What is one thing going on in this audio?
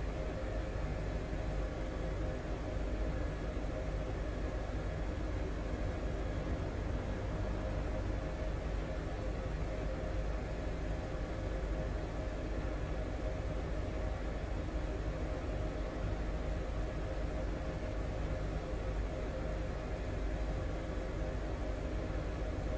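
A helicopter's engine and rotor drone steadily from inside the cabin.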